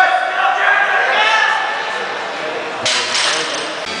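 A barbell clanks down onto a metal rack.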